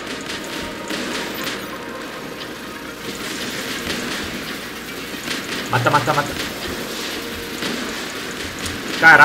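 Heavy metal footsteps thud as a giant robot walks.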